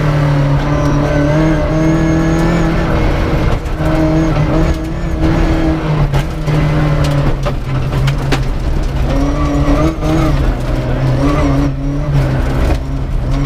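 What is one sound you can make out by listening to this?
A rally car engine roars loudly, revving up and down through gear changes.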